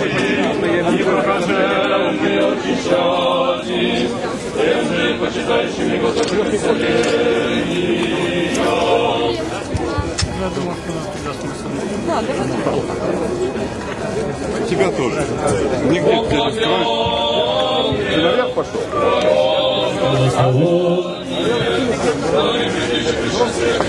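A dense crowd of men and women chatters and shouts close by, outdoors.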